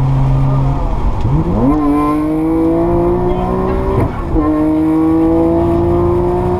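A car engine revs up hard, shifts gear and climbs again.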